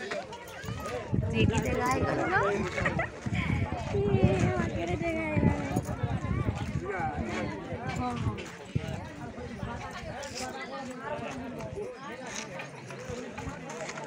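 Several women talk and argue loudly, close by, outdoors.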